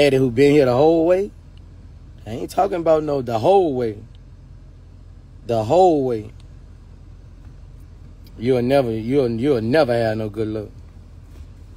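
A man sings loudly and with feeling close to a phone microphone, in short bursts.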